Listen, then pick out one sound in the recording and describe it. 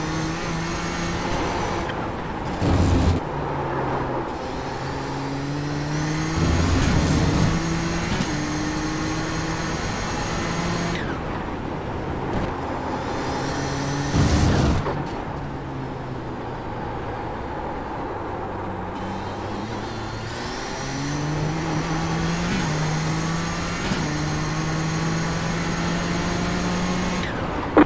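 A race car engine roars, rising and falling in pitch as the car shifts gears.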